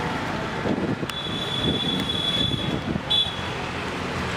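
Traffic rumbles steadily nearby.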